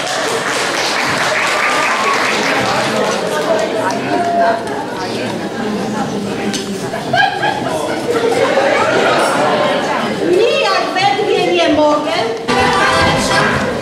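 An accordion plays.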